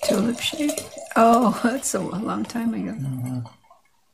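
Wine pours and splashes into a glass.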